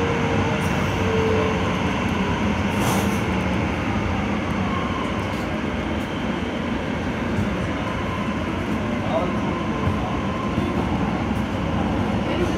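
A train rumbles steadily along rails through a tunnel.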